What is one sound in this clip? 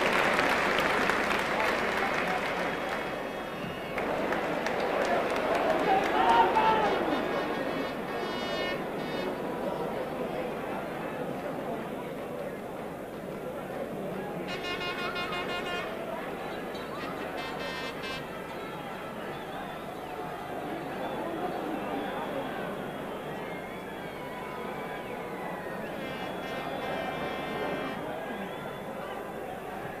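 A large stadium crowd roars and cheers, loudest at the start and then settling to a steady murmur.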